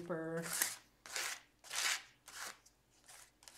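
A plastic card scrapes paint across paper in short strokes.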